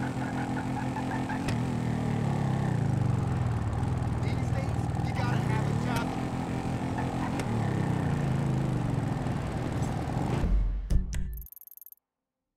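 A motorcycle engine idles and revs loudly.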